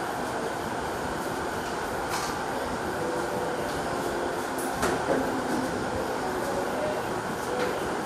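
Plastic chairs clatter and scrape as they are moved.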